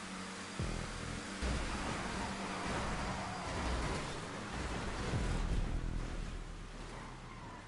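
Race cars crash and scrape against each other.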